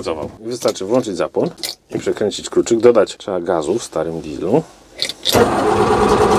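A starter motor cranks a diesel engine.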